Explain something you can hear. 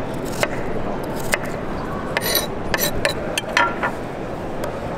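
A knife chops quickly against a wooden cutting board.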